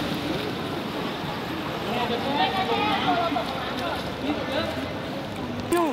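Swimmers splash in water.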